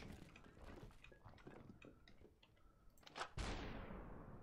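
A glass bottle shatters.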